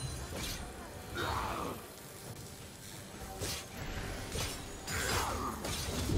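Magic spell effects whoosh and crackle in short bursts.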